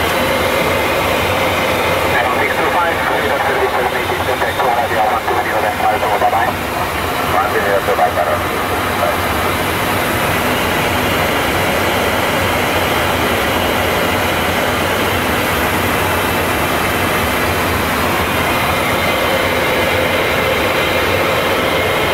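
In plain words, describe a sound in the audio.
Aircraft engines drone loudly and steadily.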